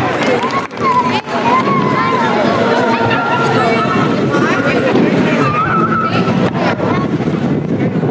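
A crowd of adults and children chatters and cheers outdoors.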